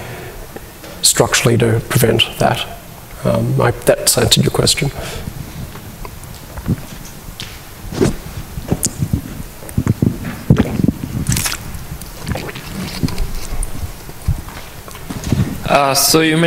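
A young man talks calmly through a microphone.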